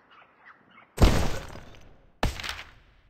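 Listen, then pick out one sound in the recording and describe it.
A short game sound effect whooshes as a menu opens.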